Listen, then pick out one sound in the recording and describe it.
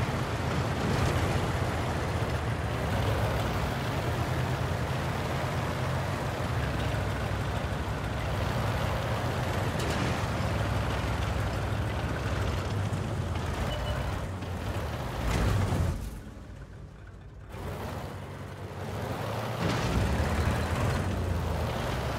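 Heavy tank engines rumble and clank steadily.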